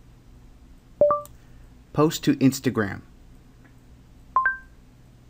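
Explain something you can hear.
A phone gives short electronic beeps.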